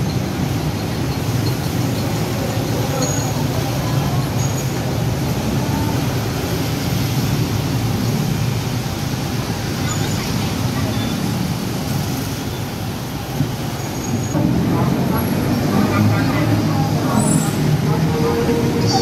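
City traffic rumbles steadily from a busy road below.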